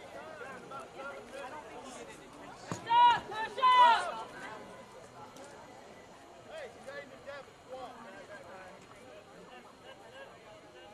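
Players shout to each other across an open field, some distance away.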